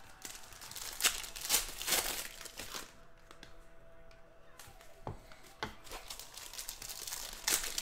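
Cards rustle and slide as they are shuffled by hand.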